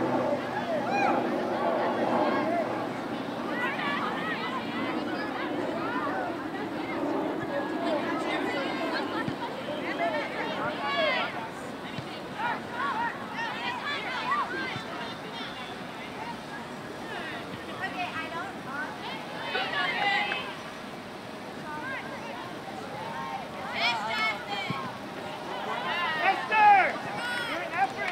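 Young women shout and call to each other across an open field.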